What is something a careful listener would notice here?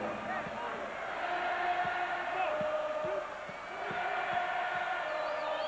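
Fans in a large crowd whistle and jeer loudly.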